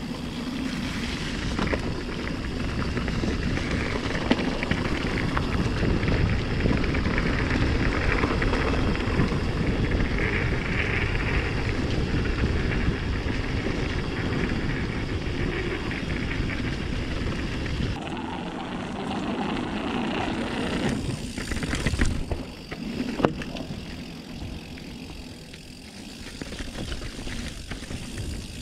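Bicycle tyres crunch and rumble over a dirt trail.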